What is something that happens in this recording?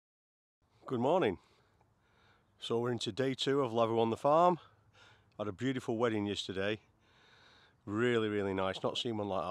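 A middle-aged man talks calmly, close up.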